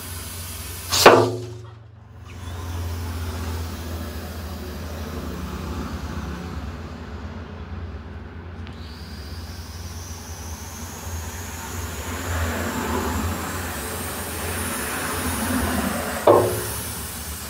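A plastic pipe knocks against a hard surface.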